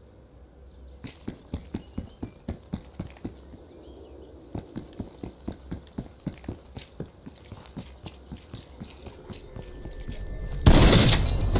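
Footsteps run quickly along a road in a steady rhythm.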